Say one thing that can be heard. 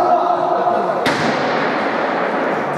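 A ball is kicked with a sharp thud that echoes through a large hall.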